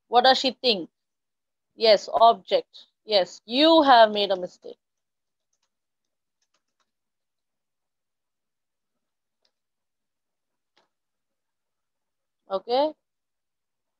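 A young woman speaks calmly and closely over an online call, with long pauses.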